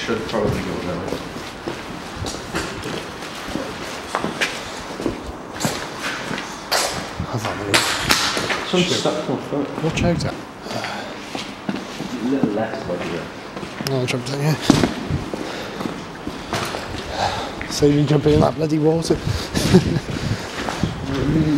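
Footsteps crunch on gritty concrete.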